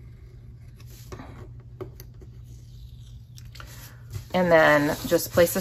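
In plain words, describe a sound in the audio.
Paper rustles softly as a sticker is peeled and pressed down.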